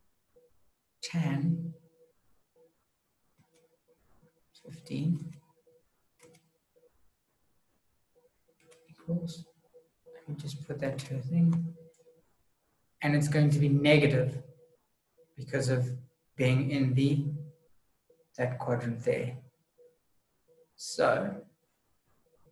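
A man speaks calmly and close, in short phrases with pauses.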